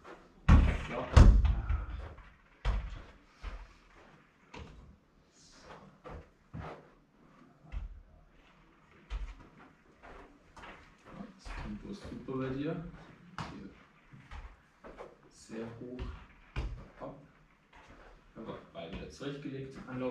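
A ball thumps as it is kicked against a wall.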